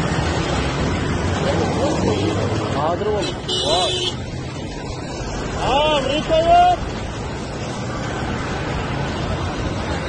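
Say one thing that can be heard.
A pickup truck drives past.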